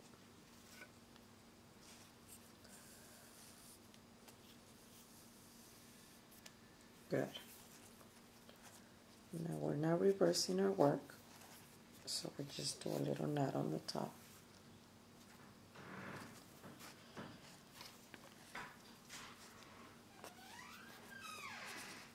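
Thread rustles softly between fingers.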